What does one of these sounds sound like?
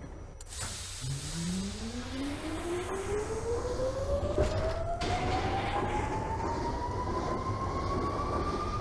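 Electric traction motors of a subway train whine, rising in pitch as the train pulls away.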